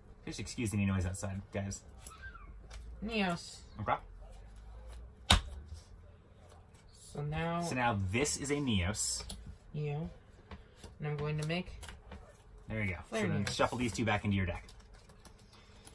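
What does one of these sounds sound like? Playing cards slap softly onto a table.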